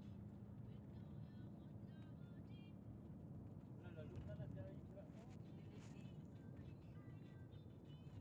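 A vehicle's interior rumbles as it drives along a road.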